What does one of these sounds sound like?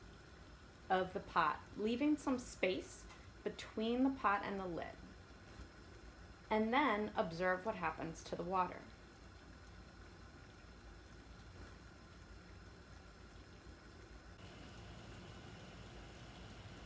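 Water bubbles and simmers in a pot.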